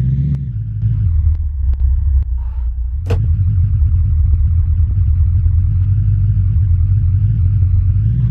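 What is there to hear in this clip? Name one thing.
A car engine rumbles low and steady, revving as the vehicle climbs.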